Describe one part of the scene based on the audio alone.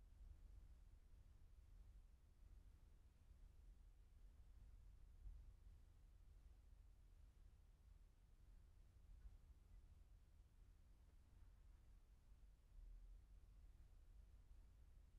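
Wind rumbles steadily across a microphone outdoors.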